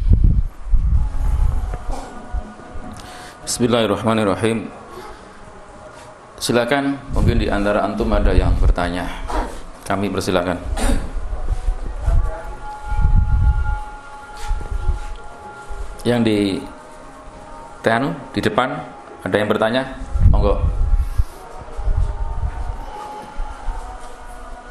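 Low thumps from a microphone being handled.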